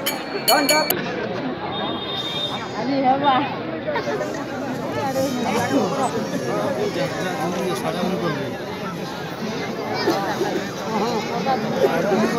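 A crowd of men talks and calls out all around, close by, outdoors.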